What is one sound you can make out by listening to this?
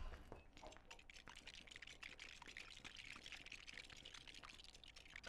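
Small coins jingle in quick, bright bursts.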